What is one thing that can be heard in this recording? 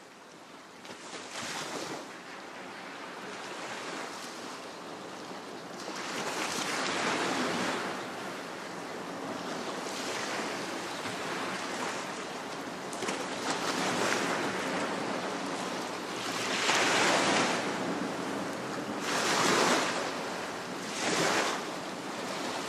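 Gentle waves wash onto a sandy shore in surges.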